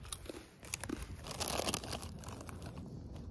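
A plastic bag crinkles up close.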